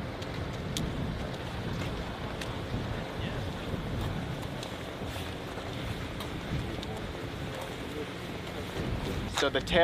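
Footsteps tap on hard pavement as a group walks.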